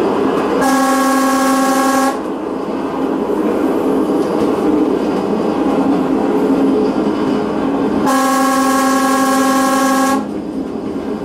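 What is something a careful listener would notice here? A train horn sounds two long blasts.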